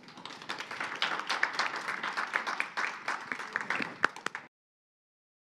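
An audience whoops and cheers.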